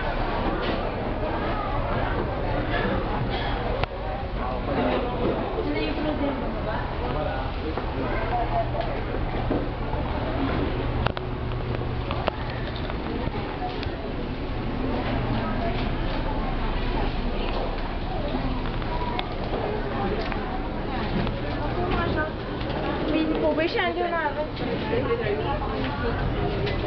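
A crowd of people murmur and chatter in a large echoing hall.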